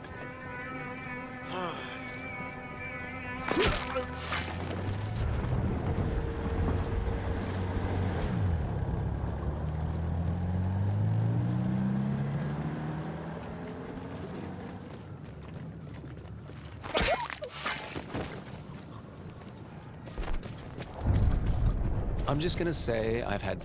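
Footsteps crunch on gravel and mud.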